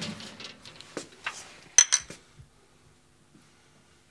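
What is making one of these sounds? Glass bottles clink together.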